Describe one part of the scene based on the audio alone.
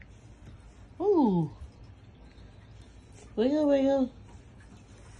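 A cat meows loudly twice, close by.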